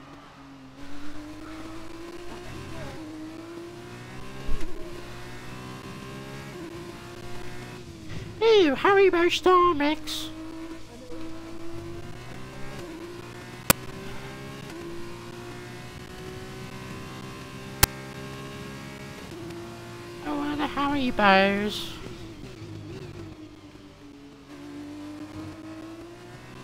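A racing car engine whines steadily, rising and falling in pitch as gears shift.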